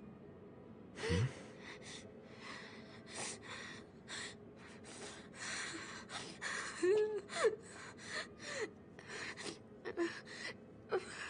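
A young man speaks softly.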